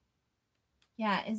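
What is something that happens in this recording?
A middle-aged woman speaks briefly and calmly, close by.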